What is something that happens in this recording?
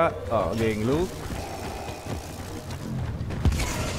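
A lightsaber hums and buzzes close by.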